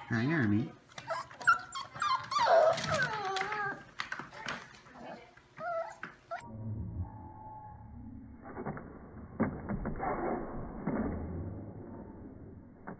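Puppies scuffle and rustle on a soft blanket.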